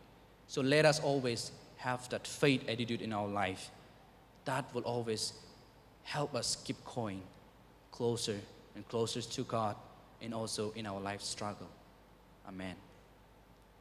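A young man speaks calmly into a microphone in a room with a slight echo.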